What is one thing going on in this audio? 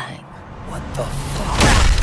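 A man speaks gruffly, close by.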